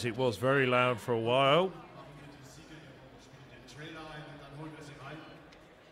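A middle-aged man speaks into a microphone, heard over loudspeakers in a large echoing hall.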